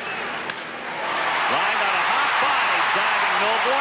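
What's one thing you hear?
A large stadium crowd erupts into loud cheering.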